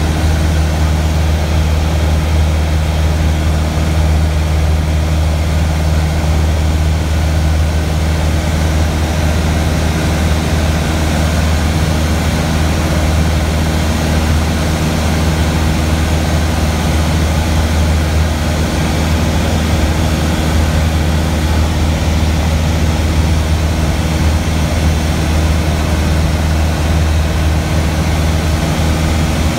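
A small propeller plane's engine drones loudly and steadily from inside the cabin.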